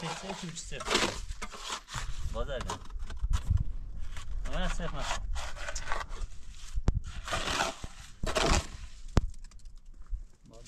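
A trowel scrapes and mixes wet cement mortar in a metal basin.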